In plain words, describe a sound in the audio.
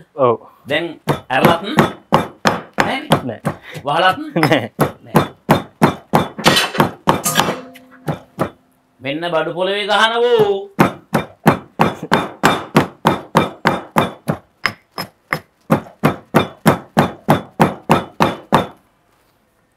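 A pestle pounds steadily in a mortar.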